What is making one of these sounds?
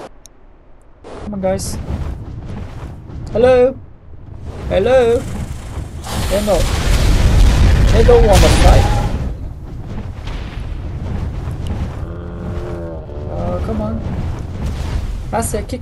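A large creature's wings beat in loud whooshes.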